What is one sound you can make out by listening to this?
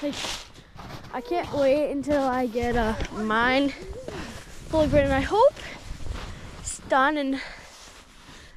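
A young person speaks excitedly close to the microphone.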